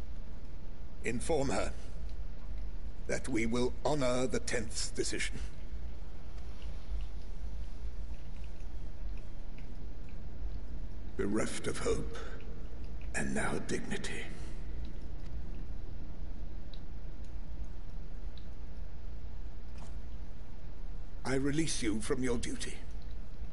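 A man speaks in short, low, measured phrases.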